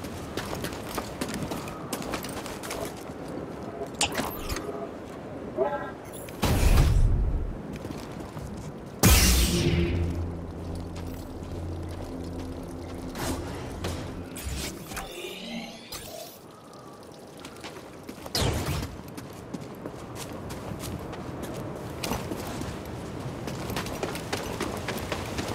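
Footsteps crunch on rock and gravel.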